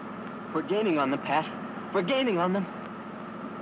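A young man speaks excitedly, close by.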